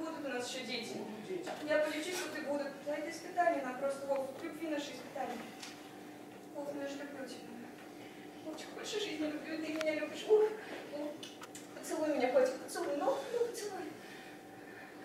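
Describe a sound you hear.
A young woman speaks with feeling into a microphone in an echoing hall.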